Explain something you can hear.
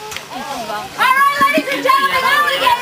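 A crowd of children shouts and squeals excitedly.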